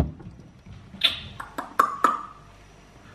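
Glass bottles clink inside a fridge door.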